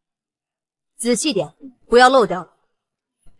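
A young woman speaks firmly.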